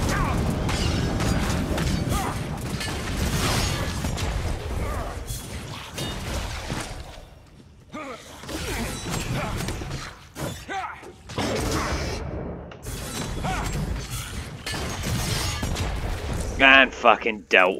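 Magic spells crackle and blast with loud, rapid impacts.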